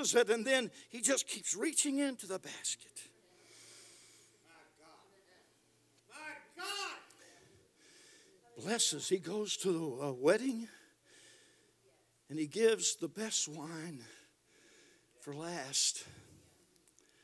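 An elderly man speaks with animation into a microphone, pausing often.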